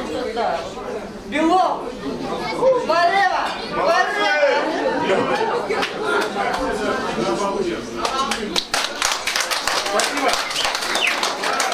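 A middle-aged woman speaks and laughs.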